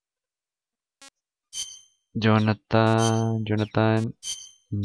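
A game menu beeps as a choice is changed.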